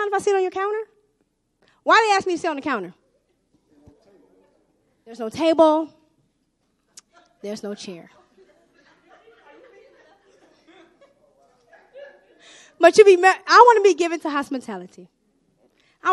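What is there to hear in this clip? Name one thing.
A young woman sings into a microphone in short phrases, with pauses between them.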